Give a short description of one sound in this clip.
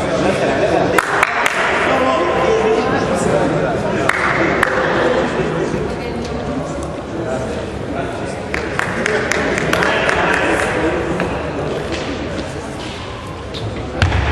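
A table tennis ball clicks sharply against a paddle and table in an echoing hall.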